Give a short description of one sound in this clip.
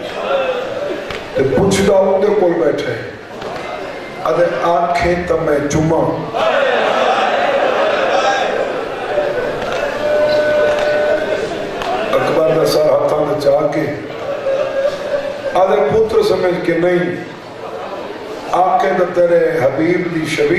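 A young man recites with feeling into a microphone, heard through loudspeakers in an echoing hall.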